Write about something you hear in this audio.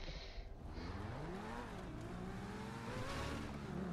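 A car engine hums and revs up as the car drives forward.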